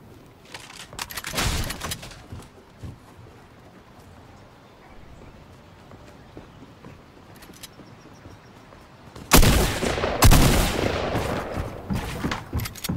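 Wooden walls are built with sharp knocking thuds.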